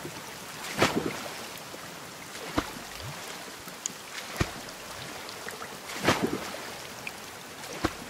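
Open water laps gently all around.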